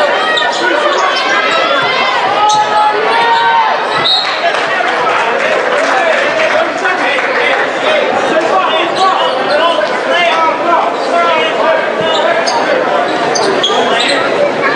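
A large crowd cheers and shouts in an echoing gym.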